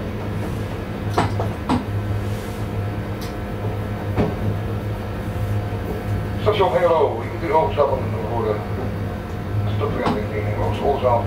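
A train rolls along the tracks with a steady low hum.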